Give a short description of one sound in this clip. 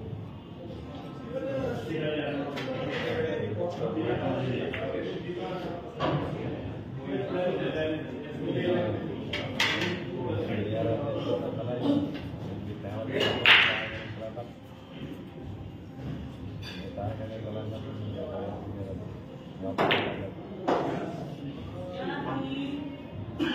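Several men chat casually nearby.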